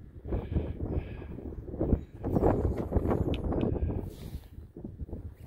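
Wind gusts across an open hillside and buffets the microphone.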